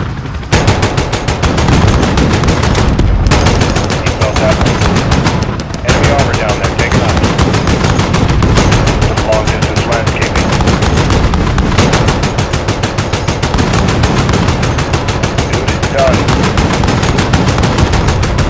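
Explosions boom one after another.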